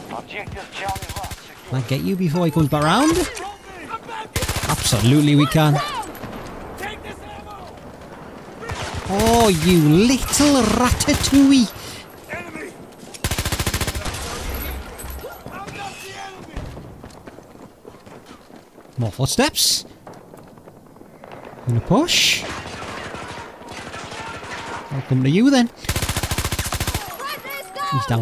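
Rapid gunfire rattles in loud bursts.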